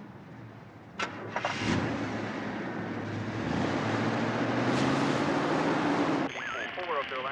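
A car engine rumbles nearby.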